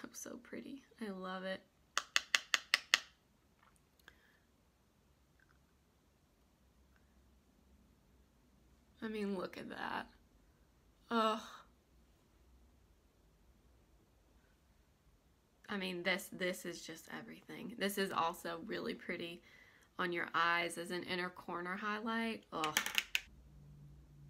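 A young woman talks calmly close to a microphone.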